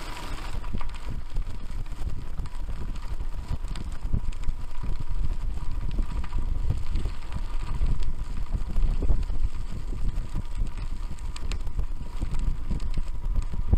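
Bicycle tyres crunch and rattle over a gravel track.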